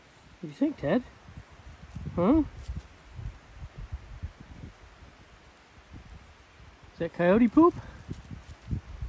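Dry leaves rustle and crackle under a dog's paws and nose.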